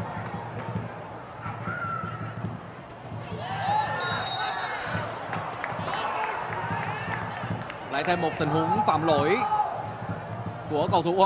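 A crowd murmurs steadily in a large open stadium.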